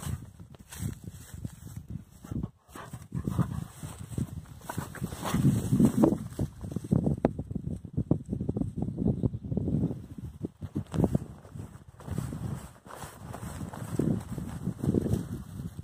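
Wind gusts and rumbles across an open outdoor space.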